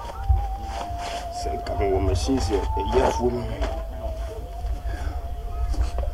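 Fabric rustles as a man pulls off his shirt.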